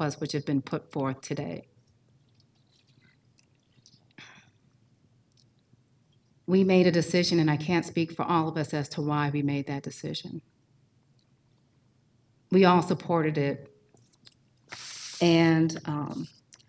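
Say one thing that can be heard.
A woman speaks calmly into a microphone, in short bursts with pauses.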